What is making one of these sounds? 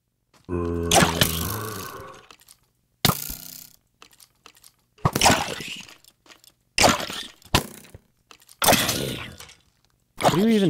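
A sword strikes a pig with sharp thwacks, again and again.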